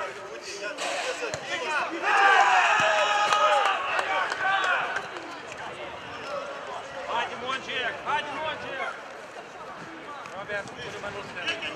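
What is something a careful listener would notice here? A football thuds when kicked.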